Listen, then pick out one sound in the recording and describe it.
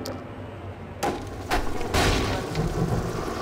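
Wooden boards crack and splinter.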